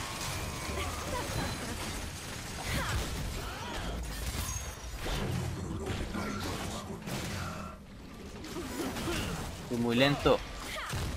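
Game weapons strike with sharp hits.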